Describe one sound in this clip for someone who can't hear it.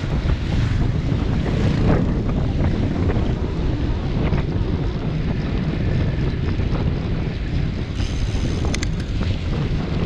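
Wind buffets loudly against a microphone while riding outdoors.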